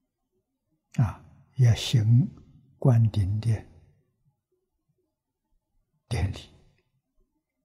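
An elderly man speaks calmly and slowly into a microphone, with long pauses.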